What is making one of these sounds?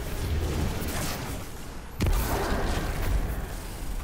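A heavy blow lands with a crackling energy burst.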